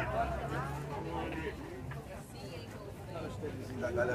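A crowd of people chatters around.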